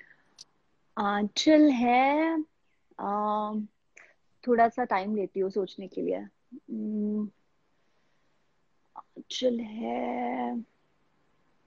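Another young woman speaks calmly over an online call.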